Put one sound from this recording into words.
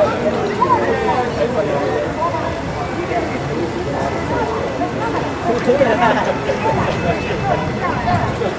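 A large flock of birds chirps and calls overhead in a dense chorus.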